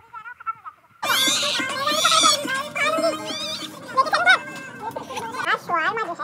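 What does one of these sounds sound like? A young woman laughs and talks with animation.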